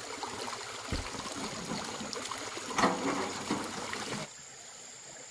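Water trickles over stones in a shallow stream.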